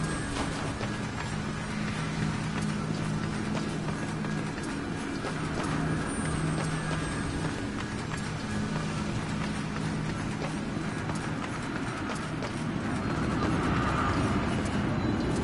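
Heavy footsteps thud on stone as a figure runs.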